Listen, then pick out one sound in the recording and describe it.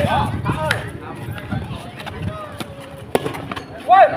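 A volleyball is struck hard by hand.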